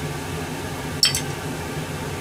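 A plate clinks against a pot.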